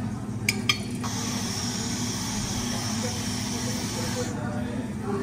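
Whipped cream hisses out of a can.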